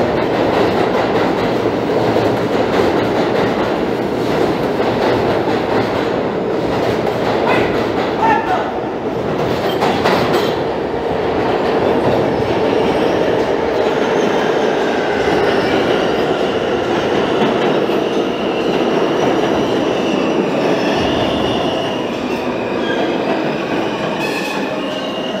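A subway train rumbles and clatters past along the platform, echoing loudly.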